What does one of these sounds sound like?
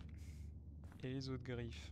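A man speaks calmly close to a microphone.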